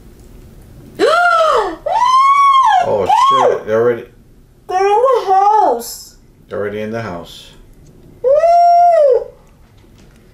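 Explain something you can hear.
A woman squeals in fright.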